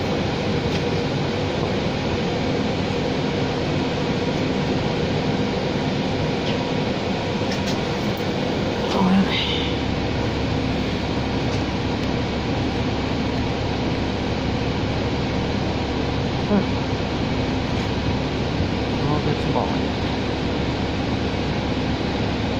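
A bus cabin rattles and creaks over the road.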